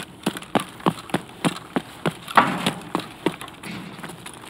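Footsteps crunch on gritty ground at a steady pace.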